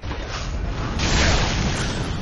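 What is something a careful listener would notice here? Fire bursts with a whooshing roar.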